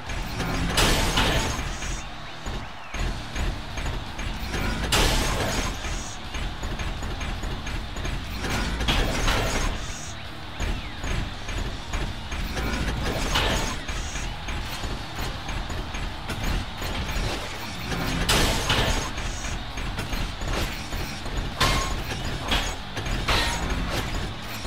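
Heavy metal punches clang and thud as robots fight.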